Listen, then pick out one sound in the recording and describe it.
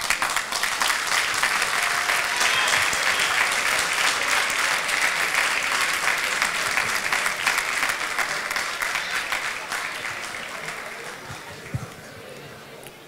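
A large crowd claps and cheers loudly in a big echoing hall.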